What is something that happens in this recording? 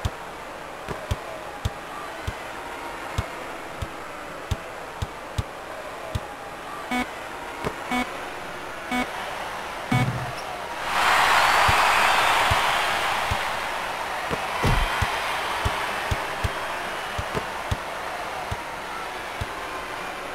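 A basketball bounces steadily on a hard court.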